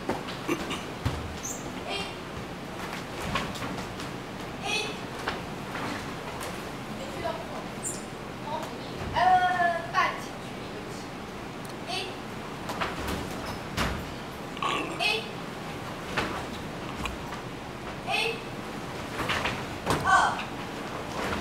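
Bare feet thump and slide on a wooden floor.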